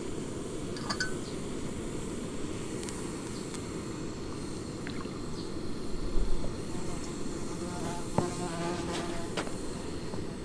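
Metal pots clink as they are handled.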